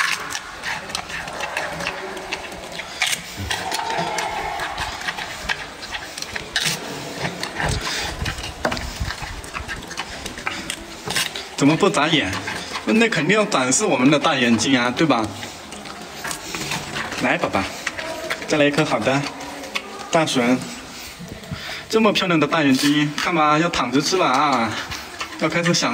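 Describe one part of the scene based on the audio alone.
A panda crunches and chews bamboo up close.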